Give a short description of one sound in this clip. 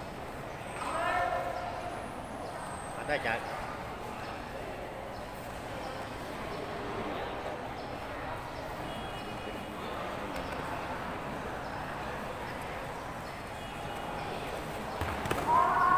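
A young man shouts sharply.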